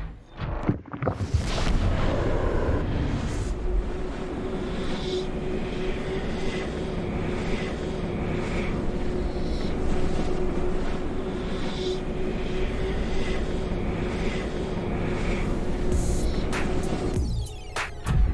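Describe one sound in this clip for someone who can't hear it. A loud rushing whoosh roars steadily, then cuts off.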